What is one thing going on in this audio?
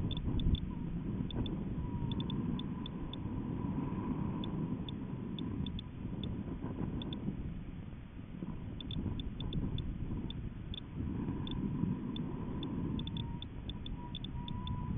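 Wind rumbles and buffets steadily against the microphone.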